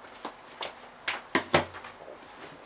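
Clothing rustles and bumps against a microphone up close.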